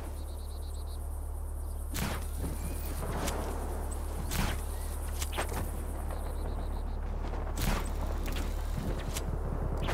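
A parachute flaps open in the wind.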